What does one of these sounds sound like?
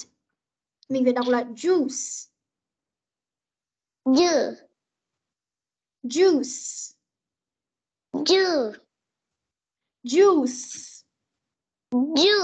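A woman reads out single words slowly and clearly over an online call, with pauses between them.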